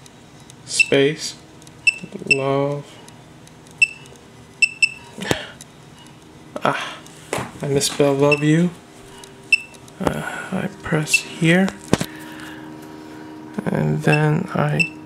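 A short electronic beep sounds with each tap on a keyboard.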